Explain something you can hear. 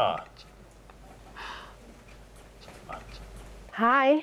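A young woman's heels click on a hard floor as she walks.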